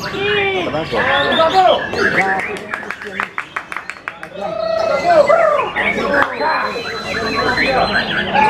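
A caged songbird sings loud, varied whistling phrases close by.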